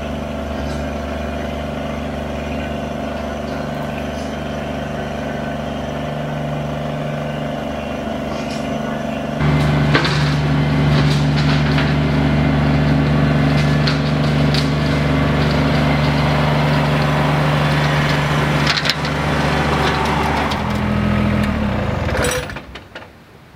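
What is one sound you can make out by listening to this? A small tractor engine runs steadily and rumbles close by.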